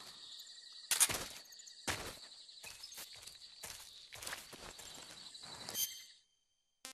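Footsteps crunch through dry grass and leaves.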